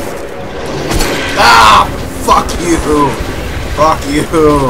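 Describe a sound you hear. A monster lets out a loud, shrieking roar.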